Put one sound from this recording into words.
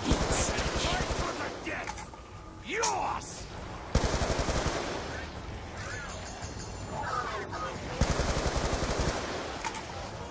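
Zombies growl and snarl.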